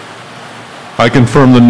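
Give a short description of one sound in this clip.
An elderly man speaks loudly into a microphone, heard over a loudspeaker.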